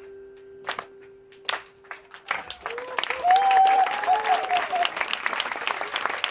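An audience claps along in rhythm.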